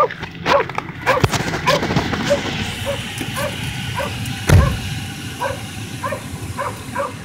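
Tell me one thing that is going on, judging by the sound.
A car engine runs and rises as the car drives off.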